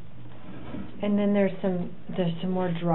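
A woman speaks calmly, heard through a distant room microphone.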